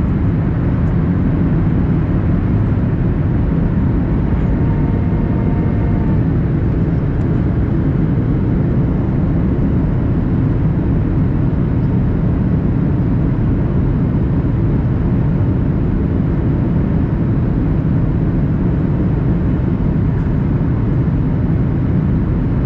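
Jet engines roar steadily with a deep, constant rumble of a plane in flight.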